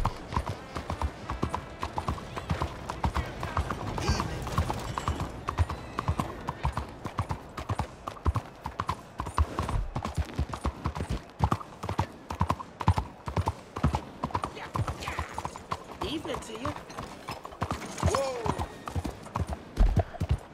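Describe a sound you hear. Horse hooves clop steadily on cobblestones.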